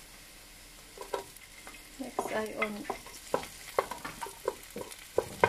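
A wooden spoon scrapes and knocks against a pot.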